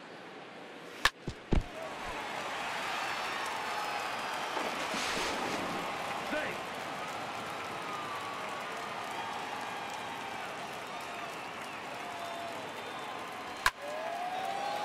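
A wooden baseball bat cracks against a ball.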